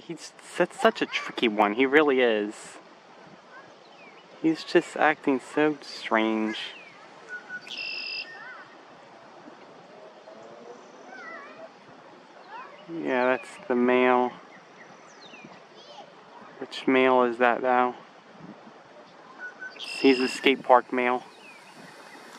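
An osprey calls in a series of shrill, rapid chirps.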